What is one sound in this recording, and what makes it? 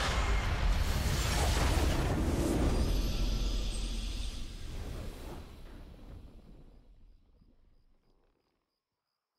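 A triumphant game fanfare blares loudly and then slowly fades away.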